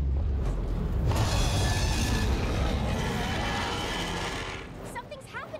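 A heavy blast roars with a deep rumble and slowly fades.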